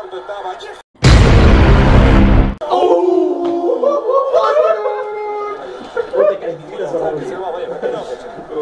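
Young men shout and cry out loudly nearby.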